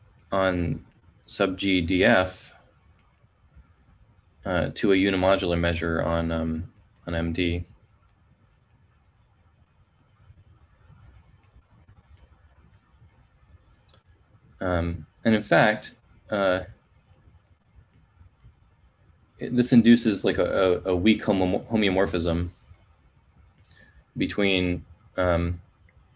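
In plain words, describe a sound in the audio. A man speaks calmly in bursts with pauses, heard close through a microphone on an online call.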